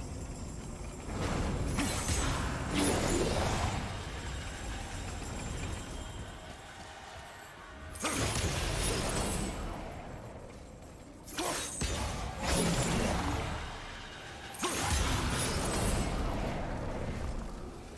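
Bursts of magical energy whoosh and crackle.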